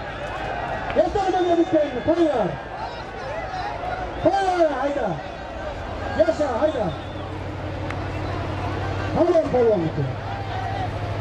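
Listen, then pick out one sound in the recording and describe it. Men in a crowd shout loudly now and then.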